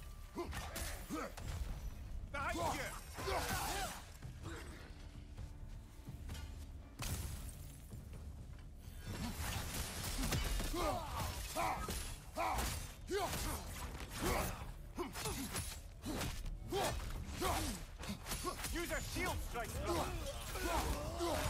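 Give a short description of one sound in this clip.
Weapons strike and slash in a close fight.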